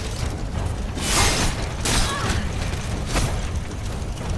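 Magic blasts crackle and whoosh in short bursts.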